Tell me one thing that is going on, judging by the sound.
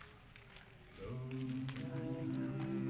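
A choir of men and women starts singing together.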